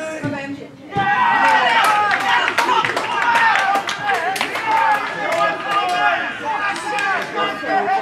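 Nearby spectators cheer and shout loudly.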